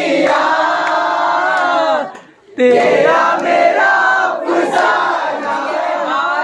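A group of young men and women sing loudly together, close by.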